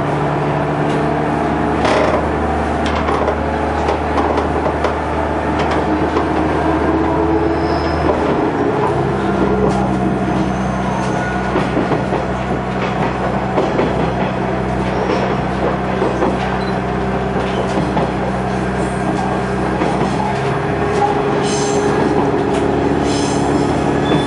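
Train wheels rumble and clack on the rails.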